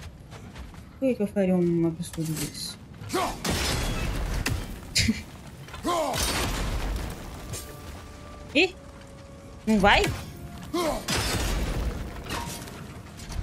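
A young woman talks close into a headset microphone with animation.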